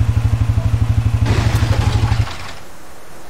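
A vehicle engine idles with a low, loud hum, then cuts off.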